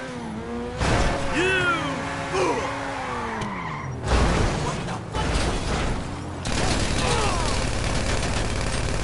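Tyres screech in short squeals as a car drifts.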